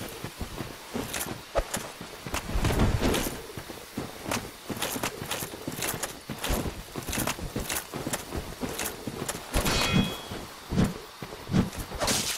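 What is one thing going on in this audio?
Heavy footsteps thud and rustle through grass.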